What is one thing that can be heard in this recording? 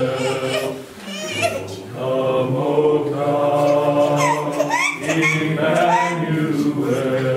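A choir of men and women sings together.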